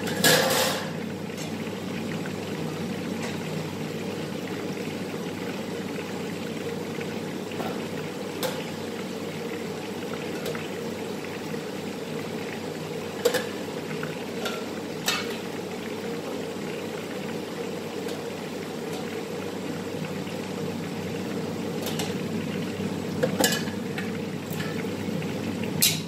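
Food sizzles steadily in hot oil.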